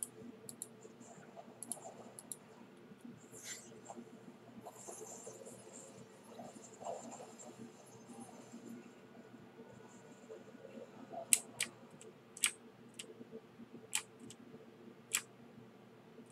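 Sharp hits and snaps ring out in quick bursts.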